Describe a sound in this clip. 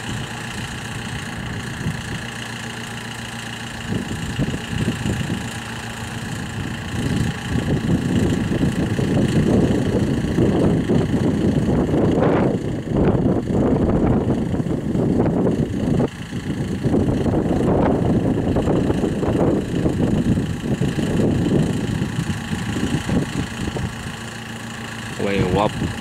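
A jet engine idles with a steady high whine.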